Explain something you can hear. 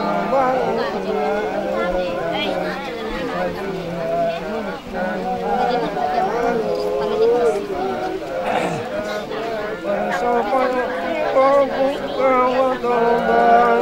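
A young woman recites slowly in a melodic, chanting voice close by.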